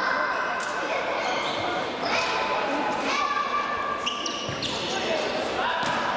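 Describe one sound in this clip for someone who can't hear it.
A ball is kicked on an indoor court.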